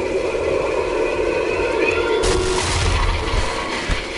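A pulley whirs along a rope.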